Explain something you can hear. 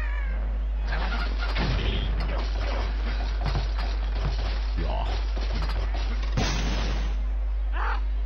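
Wooden blocks crash and tumble down in a noisy clatter.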